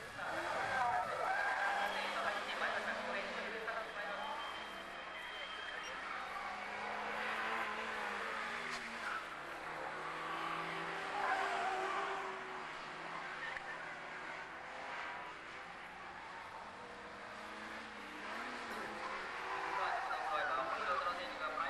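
Tyres squeal on the track.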